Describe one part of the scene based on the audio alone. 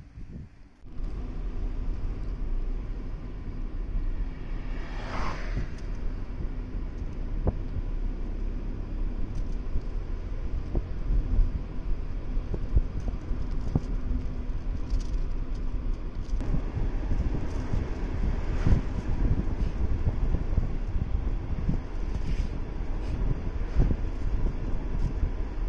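A car drives along a road, its engine and tyres rumbling steadily.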